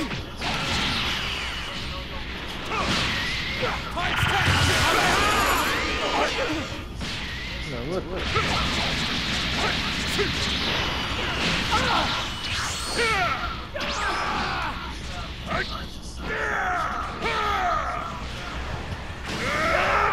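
Punches, blasts and energy bursts crash and whoosh in quick succession.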